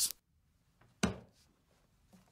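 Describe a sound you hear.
A man's hands thump down on a wooden desk.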